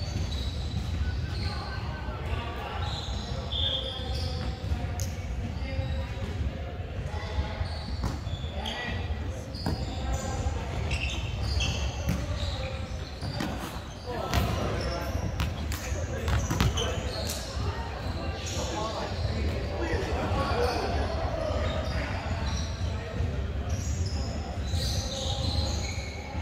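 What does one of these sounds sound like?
Young men call out and talk to each other in an echoing hall.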